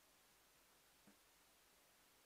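A rubber drum pad gives a single soft thud.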